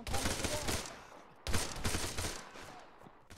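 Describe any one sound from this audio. Rifle shots crack and echo outdoors.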